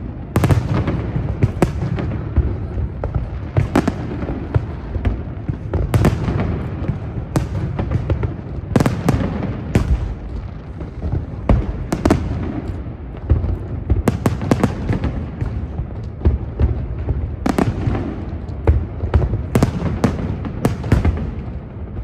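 Fireworks bang and crackle outdoors, echoing over open water.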